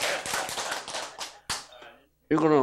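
An audience laughs and claps.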